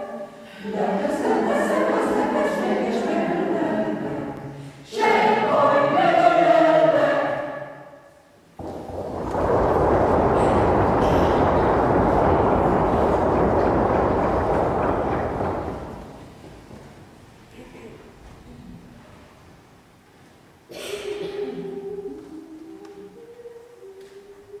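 A mixed choir sings in a large echoing hall.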